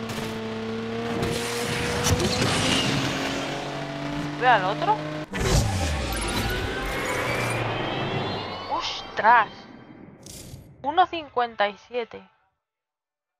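A sports car engine roars loudly as the car speeds up.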